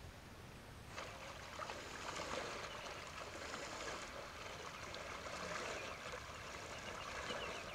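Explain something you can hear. Water splashes steadily as someone wades through the shallows.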